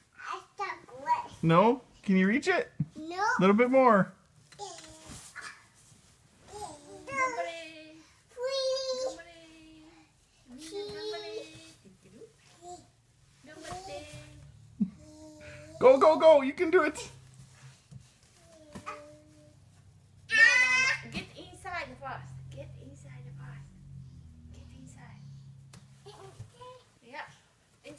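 A little girl babbles and chatters close by in a high voice.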